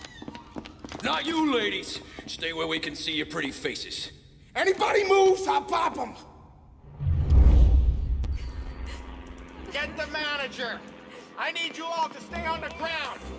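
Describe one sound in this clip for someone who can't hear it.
A man shouts orders forcefully.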